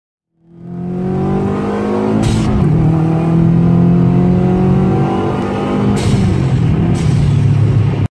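A car engine revs hard and roars as it accelerates.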